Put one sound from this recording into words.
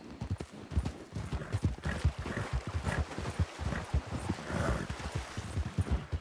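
Horse hooves splash through shallow water.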